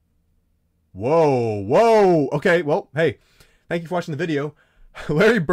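A young man shouts with excitement close to a microphone.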